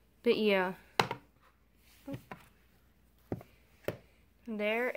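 A plastic case snaps shut with a click.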